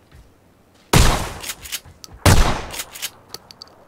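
Two loud gunshots ring out in quick succession.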